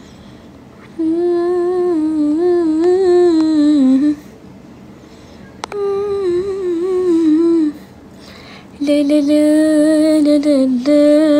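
A young woman sings softly close by, in slow held phrases.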